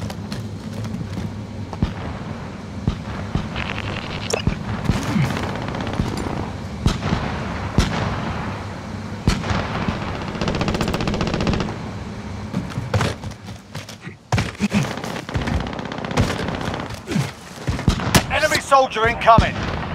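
Footsteps thud steadily across a hard surface.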